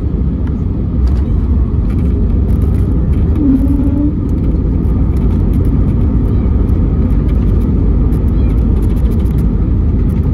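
A jet airliner's wheels rumble along the runway after landing.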